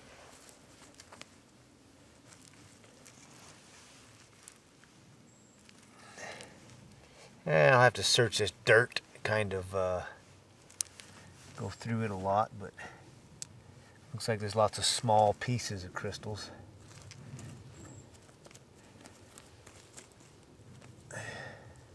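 Fingers scrape and dig through loose soil.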